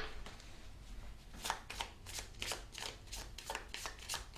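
Cards shuffle and riffle with quick soft flicks.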